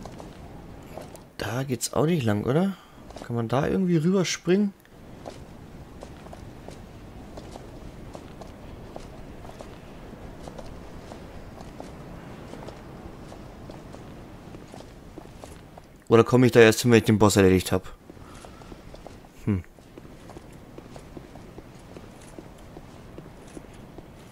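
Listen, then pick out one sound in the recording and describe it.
Armoured footsteps clank steadily on stone.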